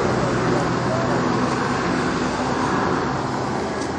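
A car's boot lid clicks open.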